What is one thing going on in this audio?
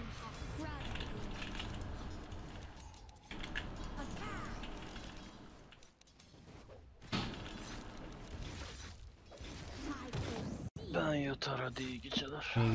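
Fantasy battle sound effects clash, crackle and whoosh.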